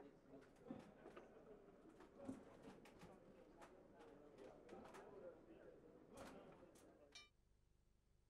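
Boxing gloves thud against bare skin and gloves.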